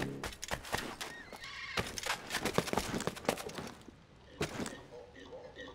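Hands and feet knock on a wooden ladder during a climb.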